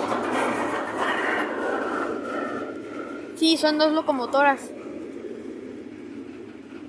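A freight train rolls past close by, its wheels rumbling and clattering on the rails.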